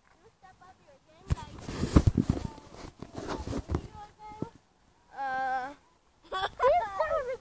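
A young boy talks and squeals close by.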